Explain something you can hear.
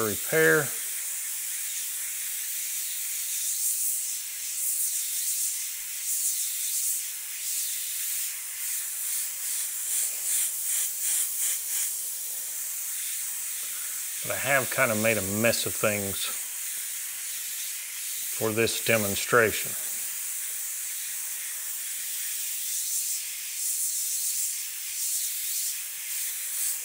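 An airbrush hisses softly as it sprays in short bursts.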